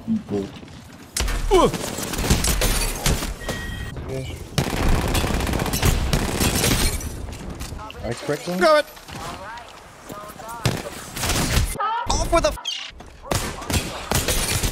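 Rapid gunshots fire close by.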